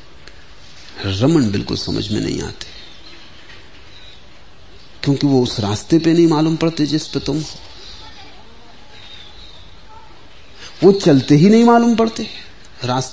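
A man speaks slowly and calmly, with long pauses.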